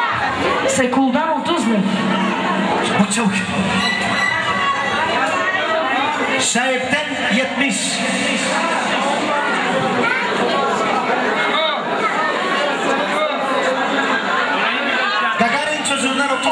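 A crowd of people chatters loudly in a busy room.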